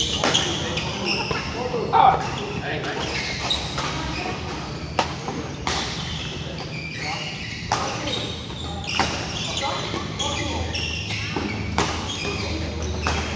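Players' voices murmur across a large echoing hall.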